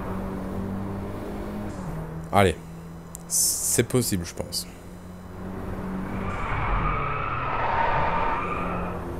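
A car engine hums steadily and shifts pitch as the car accelerates.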